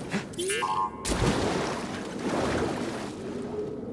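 A body splashes into water.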